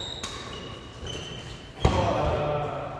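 Rackets strike a shuttlecock in a large echoing hall.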